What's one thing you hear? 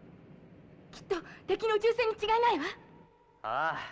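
A young man exclaims excitedly.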